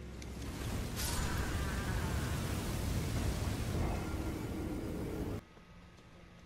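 A fiery explosion roars loudly.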